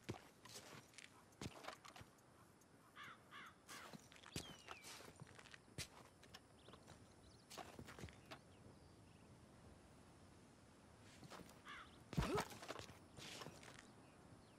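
Boots scuff and shuffle on rock.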